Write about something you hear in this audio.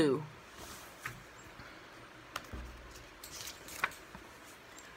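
Paper cards rustle and tap on a table.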